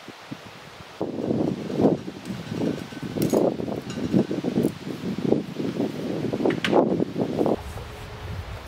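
Wind gusts roughly against the microphone outdoors.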